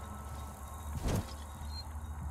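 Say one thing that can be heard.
A burning bottle whooshes through the air with a crackle of flame.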